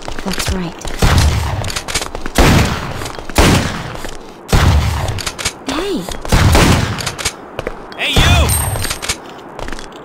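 Gunshots ring out one after another, echoing outdoors.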